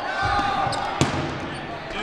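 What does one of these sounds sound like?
A rubber ball smacks sharply against a hard surface.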